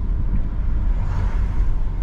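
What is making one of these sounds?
A windscreen wiper sweeps once across the glass.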